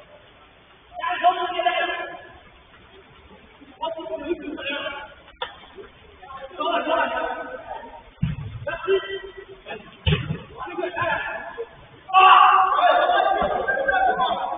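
Men shout to each other across an echoing hall.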